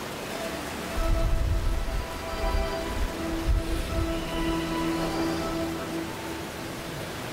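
A man chants slowly through a microphone in a large echoing hall.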